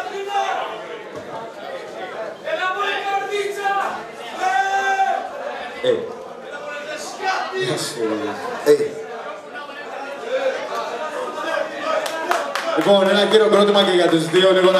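Music plays loudly through loudspeakers.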